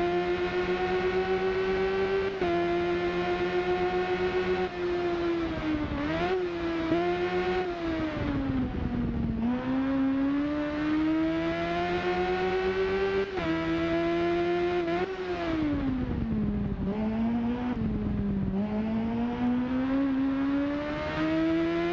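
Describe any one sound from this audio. A motorcycle engine whines loudly, revving up through the gears and dropping in pitch when slowing down for corners.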